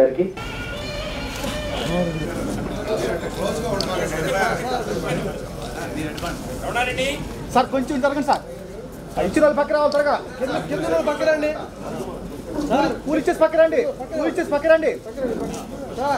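A crowd of men talk and murmur nearby.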